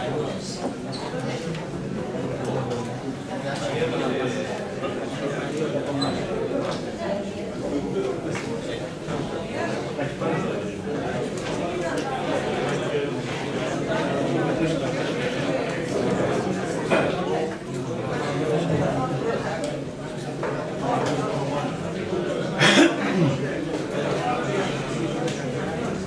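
Several men and women talk at once in a room with a slight echo.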